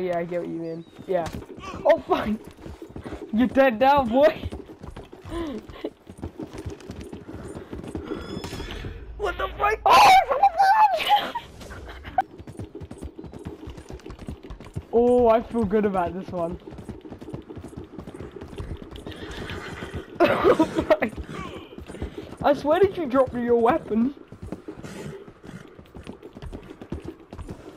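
A horse gallops, its hooves drumming on wooden planks.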